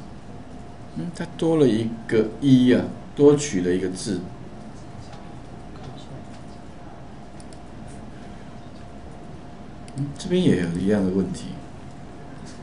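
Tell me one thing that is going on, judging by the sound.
An older man speaks calmly and close to a microphone, in short bursts with pauses.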